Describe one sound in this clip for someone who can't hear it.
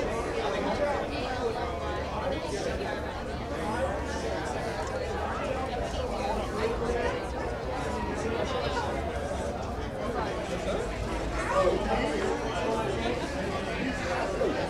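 A crowd of men and women chatter and call out all around, close by.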